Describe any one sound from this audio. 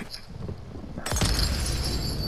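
A glass bottle shatters.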